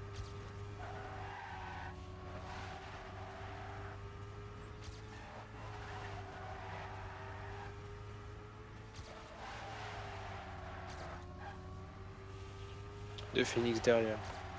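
A racing car engine hums steadily at high speed, its pitch rising and dipping slightly.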